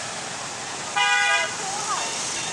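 A motorbike horn honks briefly nearby.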